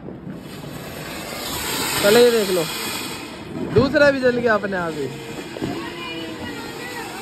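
A firework fountain hisses and crackles loudly as it sprays sparks.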